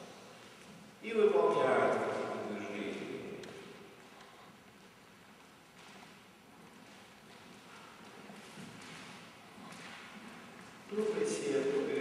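A middle-aged man speaks aloud in a large echoing hall.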